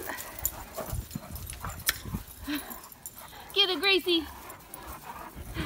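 Dogs' paws patter and scuff on dry grass.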